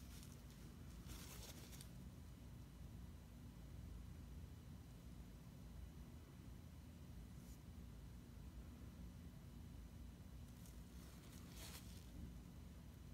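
A paper towel crumples and rustles in a gloved hand.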